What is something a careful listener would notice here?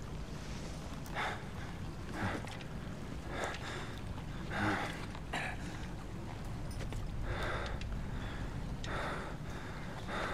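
A young man talks quietly into a nearby microphone.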